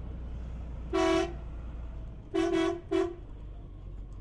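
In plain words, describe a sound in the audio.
A truck horn honks several times.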